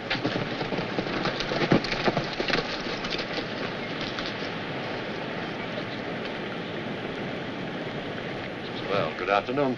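Horse hooves gallop over dry ground.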